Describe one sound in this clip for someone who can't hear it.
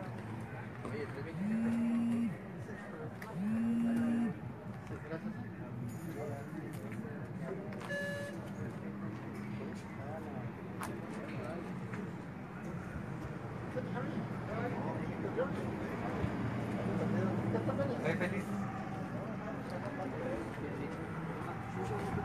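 A small crowd of men and women talks nearby outdoors.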